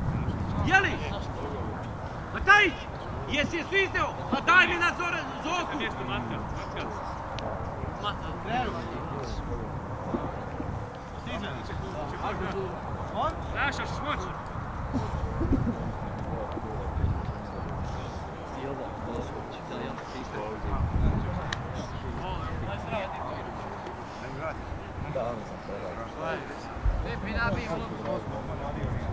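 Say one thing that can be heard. Young women shout to each other across an open field, far off.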